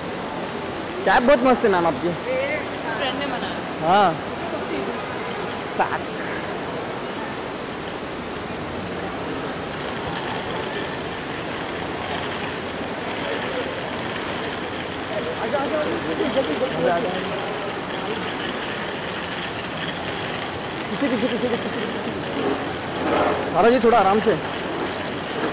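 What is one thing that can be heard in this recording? Young men call out excitedly nearby.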